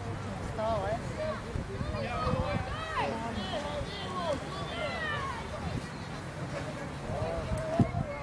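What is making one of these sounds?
A crowd of spectators shouts and cheers excitedly outdoors.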